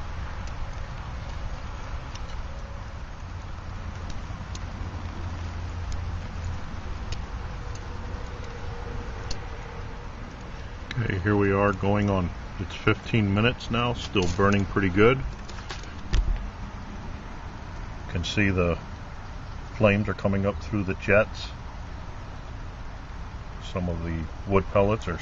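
Burning fuel crackles with faint, scattered pops.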